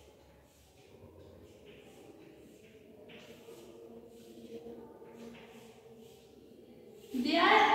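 Chalk scratches and taps on a chalkboard.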